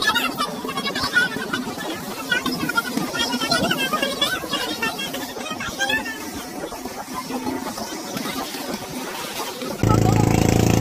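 Two women chat casually close by.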